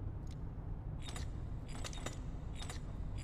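A stone dial clicks as it turns.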